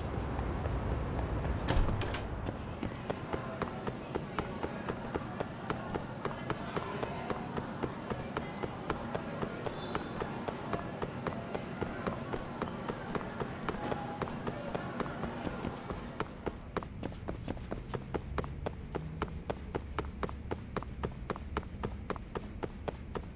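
Quick footsteps run on a hard floor.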